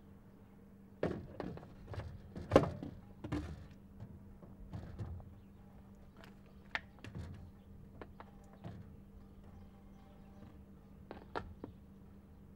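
A plastic bottle crinkles and knocks as it is handled.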